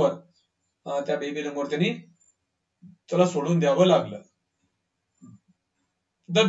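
A man speaks calmly into a microphone, explaining as he reads out.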